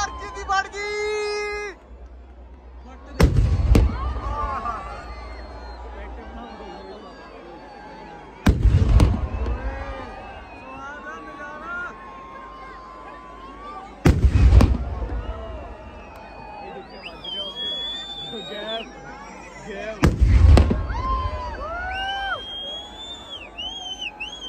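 A big crowd cheers and shouts outdoors.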